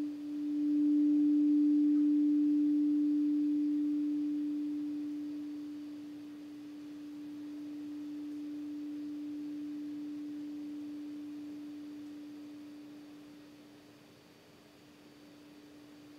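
A gong rings with a low, steady humming tone that slowly swells and fades.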